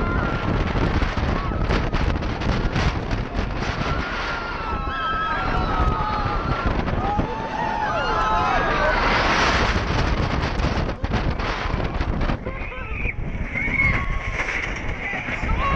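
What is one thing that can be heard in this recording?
Wind roars loudly past a fast-moving rider.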